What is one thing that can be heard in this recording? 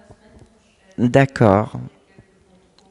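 A man speaks into a microphone over loudspeakers in a large echoing hall.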